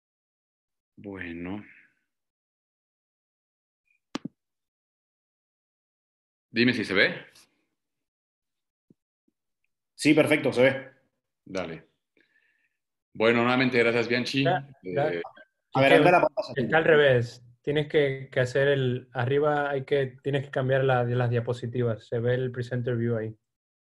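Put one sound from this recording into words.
A young man speaks calmly through a computer microphone, as if presenting on an online call.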